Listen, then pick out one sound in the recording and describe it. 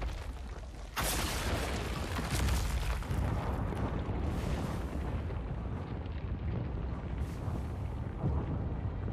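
Chunks of stone crash and clatter as they fall.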